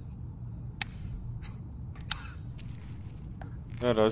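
A rifle's fire selector clicks.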